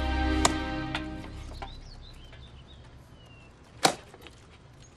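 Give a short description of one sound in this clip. An axe chops into wood with sharp thuds.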